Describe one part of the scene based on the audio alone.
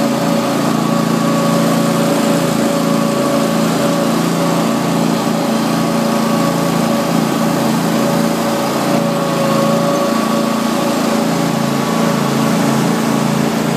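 A small engine hums steadily close by.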